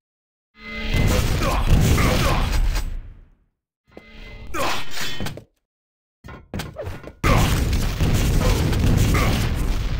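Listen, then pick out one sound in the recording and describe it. Rockets fire and explode with loud booms.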